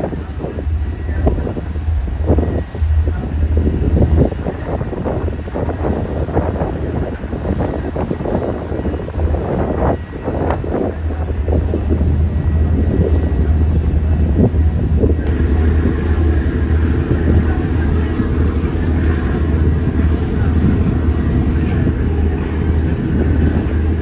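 A boat's engine rumbles steadily nearby.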